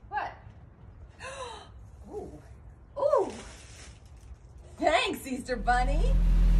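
A woman speaks excitedly nearby.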